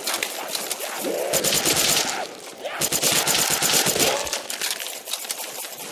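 A zombie growls and groans.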